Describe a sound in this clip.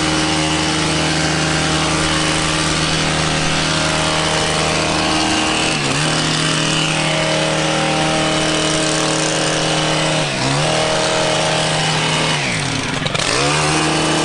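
A pressure washer engine drones loudly and steadily, dipping briefly in pitch a few times.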